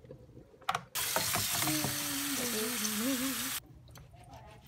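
Water runs steadily from a tap onto food.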